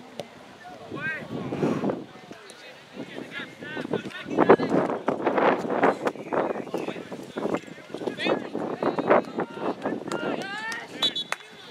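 Spectators nearby shout and cheer loudly outdoors.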